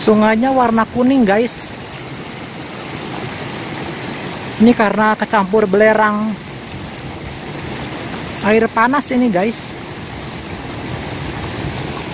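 A stream flows and burbles softly.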